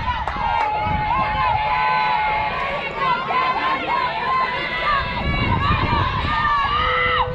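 Young girls call out and cheer across an open outdoor field.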